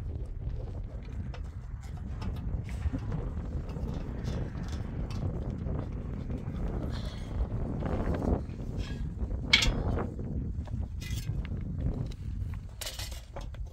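Metal fittings clink and scrape on a gas cylinder.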